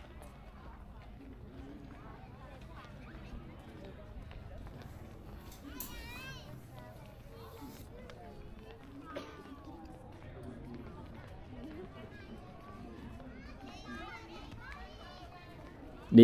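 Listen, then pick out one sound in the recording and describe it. Men and women chatter quietly at a distance outdoors.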